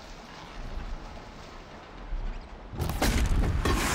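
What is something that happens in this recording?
An arrow whooshes and strikes with a sharp zap.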